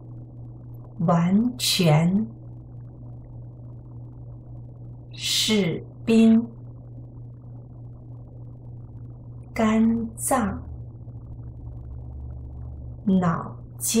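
A woman speaks calmly and clearly into a nearby microphone, in short phrases with pauses.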